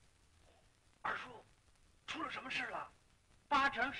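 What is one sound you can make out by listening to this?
A man speaks tensely in a low voice nearby.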